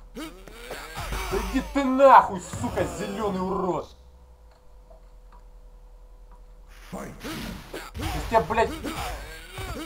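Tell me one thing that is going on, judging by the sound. Fighters grunt and yell as they strike.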